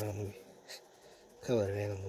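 A crayon scratches softly on paper.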